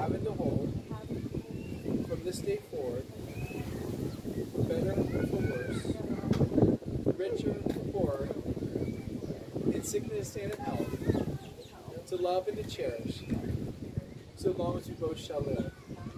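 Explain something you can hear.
A man speaks calmly and clearly nearby, outdoors.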